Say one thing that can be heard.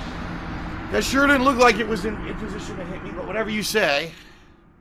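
A man shouts loudly in frustration.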